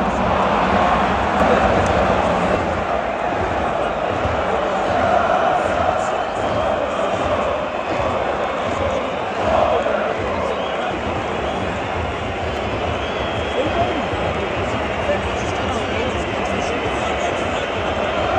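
A large stadium crowd chants and roars.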